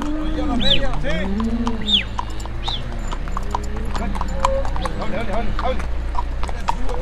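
Cattle low nearby.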